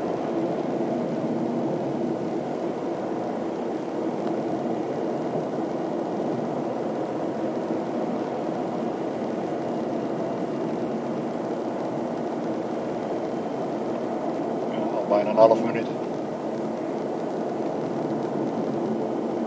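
Wind rushes past outdoors.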